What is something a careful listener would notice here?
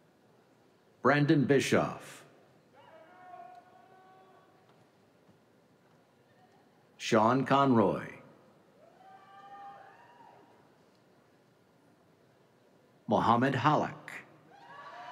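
A man reads out names through a microphone and loudspeakers in a large echoing hall.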